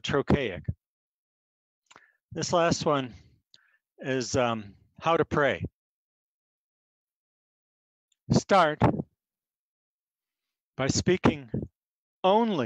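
An older man speaks calmly in short phrases into a headset microphone, heard over an online call.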